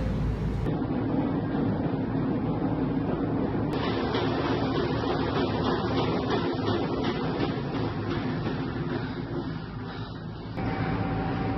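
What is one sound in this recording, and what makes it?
A treadmill belt whirs steadily under running footsteps.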